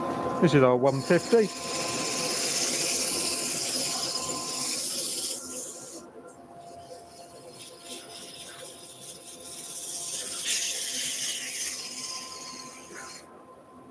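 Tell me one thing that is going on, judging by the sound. Sandpaper hisses against spinning wood.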